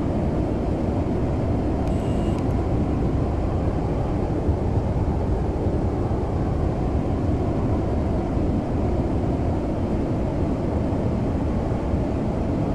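A jet engine roars steadily from inside a cockpit.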